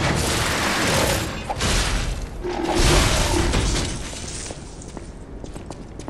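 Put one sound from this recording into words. A heavy machine whirs and clanks.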